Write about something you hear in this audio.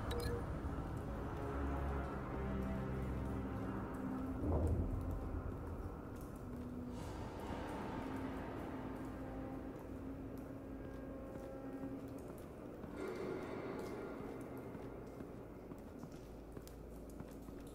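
Boots step slowly on a hard floor.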